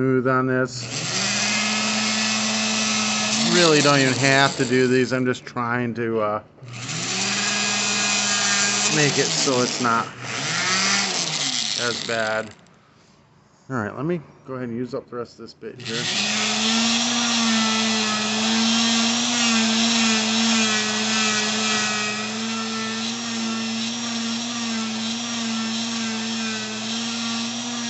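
A small high-speed rotary tool whines steadily, stopping and starting again.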